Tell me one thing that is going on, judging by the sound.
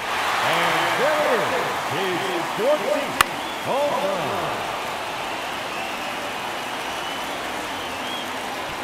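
A crowd murmurs and cheers steadily.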